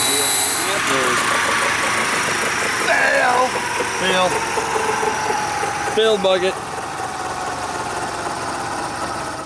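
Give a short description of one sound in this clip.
A model helicopter's rotor whirs steadily close by.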